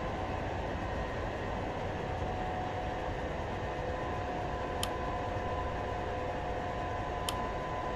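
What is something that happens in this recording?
Jet engines whine and rumble steadily at idle.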